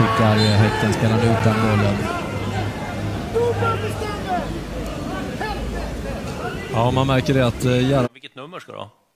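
A crowd murmurs and shouts in a large stadium.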